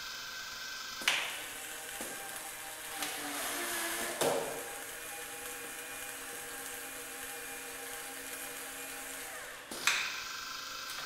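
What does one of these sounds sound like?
A pneumatic actuator hisses and clunks now and then.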